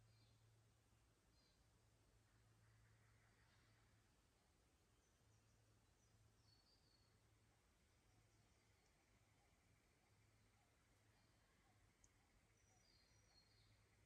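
A shallow creek trickles quietly over stones.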